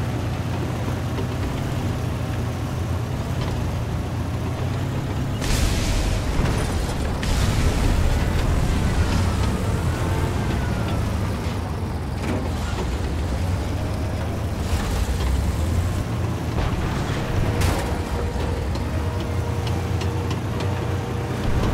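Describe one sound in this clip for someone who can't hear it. A tank engine rumbles steadily and deeply.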